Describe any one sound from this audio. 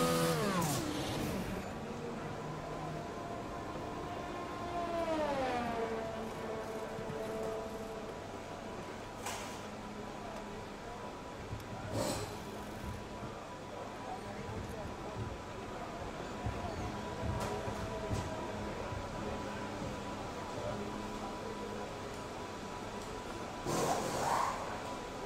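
A racing car engine revs down and settles into a steady, humming idle.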